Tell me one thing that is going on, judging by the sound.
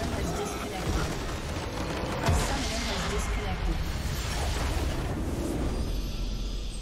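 A game structure explodes with a loud crash and crackling magic.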